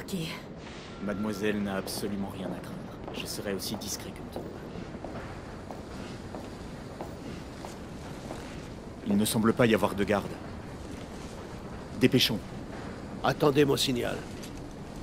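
Men speak calmly in low voices, close by.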